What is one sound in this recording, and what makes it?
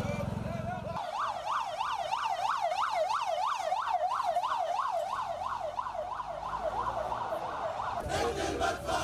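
A siren wails up and down, close by.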